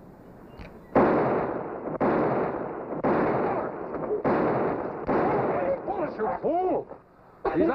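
A pistol fires several shots in quick succession, echoing.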